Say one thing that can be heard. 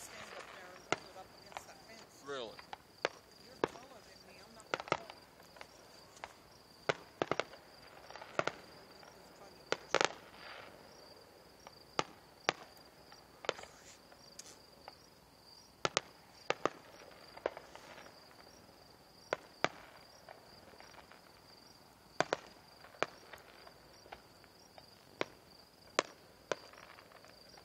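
Fireworks bang and crackle in the distance, in sharp bursts.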